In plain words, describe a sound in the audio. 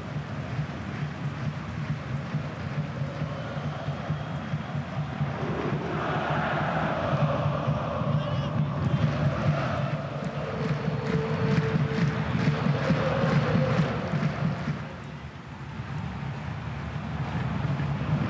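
A stadium crowd chants and drums steadily throughout.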